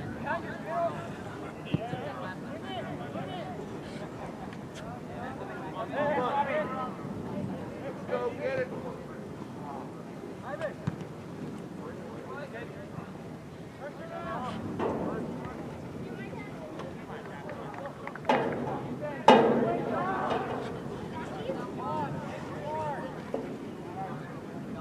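Young men shout to each other outdoors, far off.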